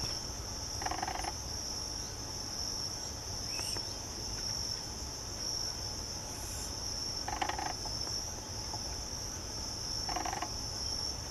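A bird gives short, harsh calls close by.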